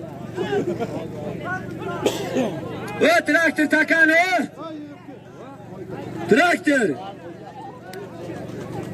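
Men in a crowd nearby talk and shout over one another outdoors.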